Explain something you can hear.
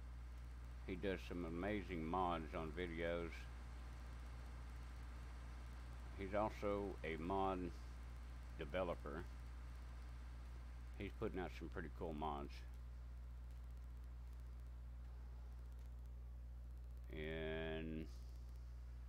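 A man speaks calmly into a headset microphone, in short bursts.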